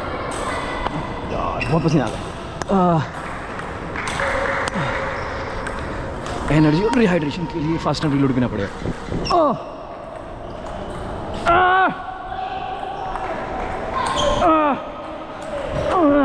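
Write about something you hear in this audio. A table tennis ball clicks against paddles and the table in a large echoing hall.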